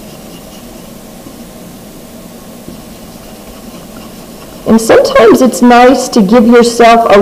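Fingers rub softly across paper.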